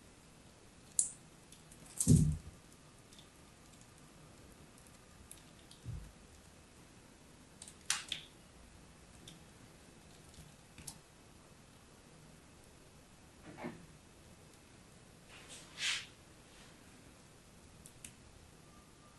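A blade scrapes and crunches through a crumbly chalky block, close up.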